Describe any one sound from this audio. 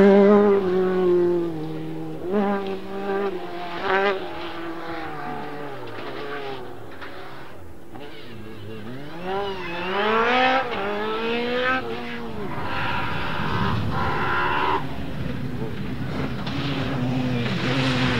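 Tyres skid and scatter gravel on a dirt track.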